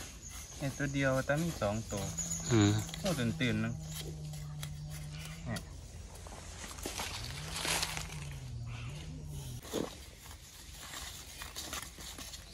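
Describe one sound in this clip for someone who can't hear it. A metal digging tool scrapes and chops into dry soil.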